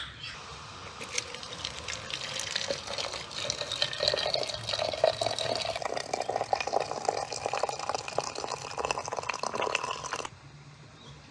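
Hot water pours from a tap into a glass teapot, rising in pitch as it fills.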